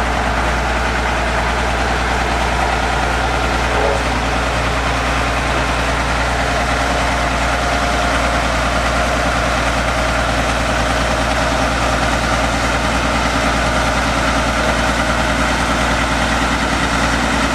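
A diesel single-drum road roller rumbles as it drives.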